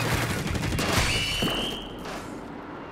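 A game explosion bursts with a loud splash.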